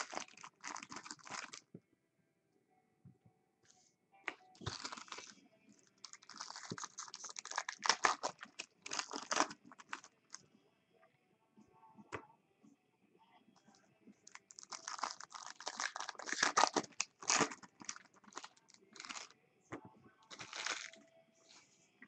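Foil card wrappers crinkle and rustle as hands tear them open.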